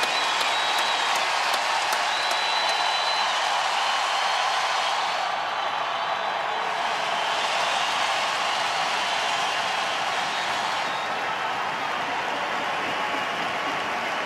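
A large crowd roars in a vast echoing arena.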